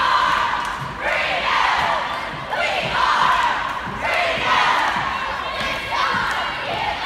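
A large crowd cheers and screams in waves in a big echoing arena.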